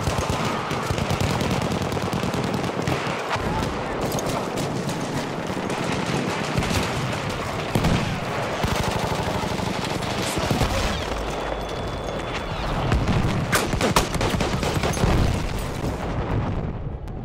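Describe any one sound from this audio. Gunshots crack rapidly amid a battle.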